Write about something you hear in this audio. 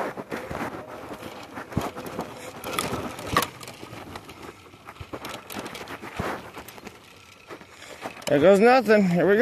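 A bicycle rattles over a bumpy dirt path.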